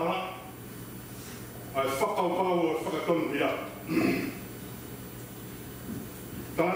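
A man speaks calmly and clearly into a microphone in a room with a slight echo.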